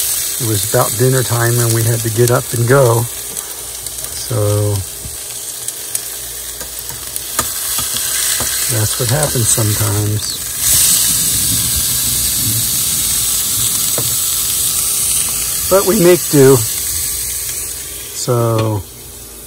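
Food sizzles and crackles as it fries in a pan.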